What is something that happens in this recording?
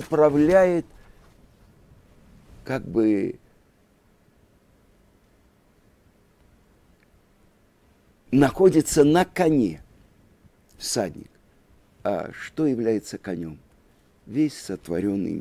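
A middle-aged man speaks calmly and expressively into a close microphone, with pauses.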